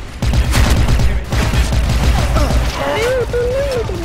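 Gunshots fire in short, quick bursts.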